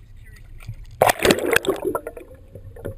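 Water splashes and gurgles as something plunges under the surface.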